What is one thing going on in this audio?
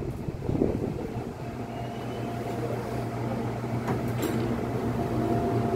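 A subway train hums steadily.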